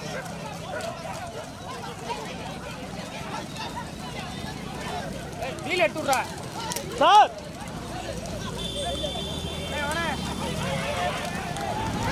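A crowd of men shouts and cheers excitedly outdoors.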